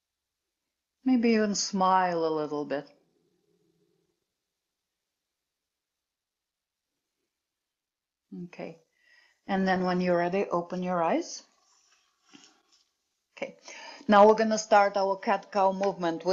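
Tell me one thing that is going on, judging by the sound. A woman speaks calmly and clearly into a close microphone, pausing between phrases.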